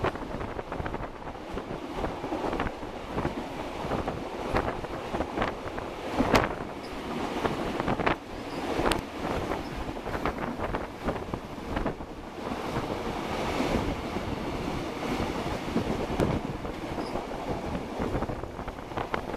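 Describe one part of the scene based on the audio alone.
Wind rushes through an open door of a moving train.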